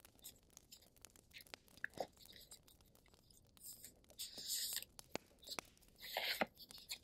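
Cards tap and click against each other.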